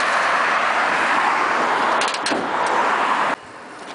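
A car hood creaks open.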